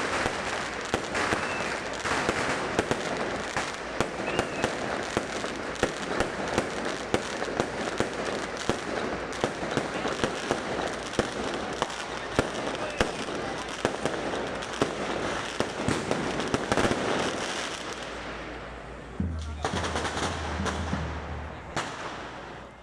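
Fireworks burst with loud bangs.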